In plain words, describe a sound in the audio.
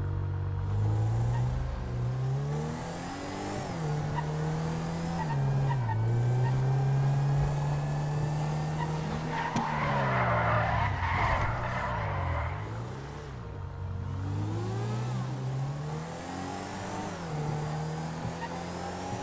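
A car engine revs up and down, rising and falling in pitch.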